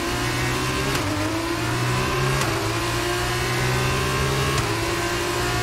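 A racing car engine drops sharply in pitch at each gear shift.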